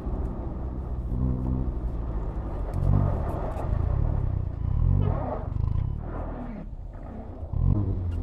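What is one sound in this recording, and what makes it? A car engine hums and revs up and down, heard from inside the car.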